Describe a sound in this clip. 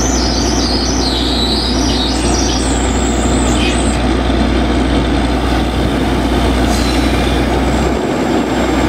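A drilling rig's engine runs with a loud, steady rumble.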